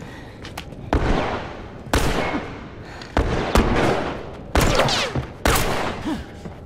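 A pistol fires sharp shots several times.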